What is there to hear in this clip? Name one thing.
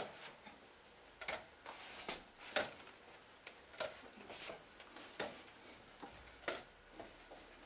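Juggled objects land softly in a man's hands at a steady rhythm.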